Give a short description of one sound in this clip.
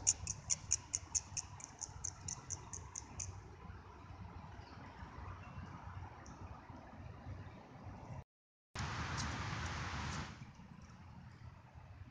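A squirrel rustles through dry leaves on the ground.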